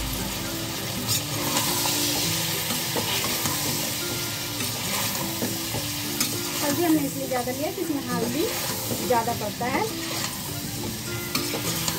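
A metal spoon scrapes and stirs vegetables in a metal pot.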